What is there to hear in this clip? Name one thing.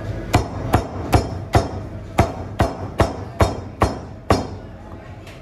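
A cleaver chops rapidly and rhythmically through meat on a board.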